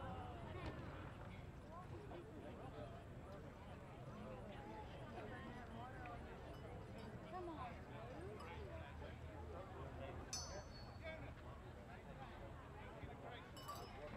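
A crowd of spectators and players chatter and call out outdoors.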